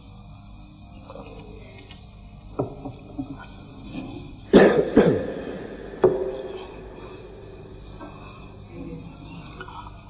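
A middle-aged man recites in a slow, melodic chant through a microphone.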